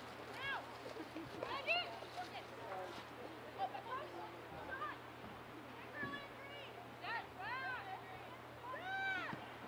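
Young women shout and call out across an open field.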